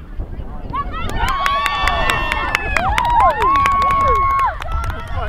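A crowd of spectators cheers and shouts in the distance outdoors.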